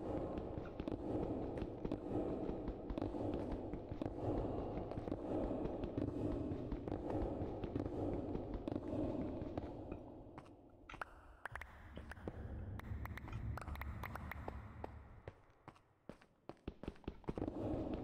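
Stone blocks crack and break in quick knocks.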